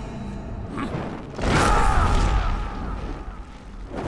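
Flames burst and roar.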